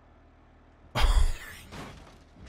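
A vehicle crashes and tumbles over rocks with a loud thud.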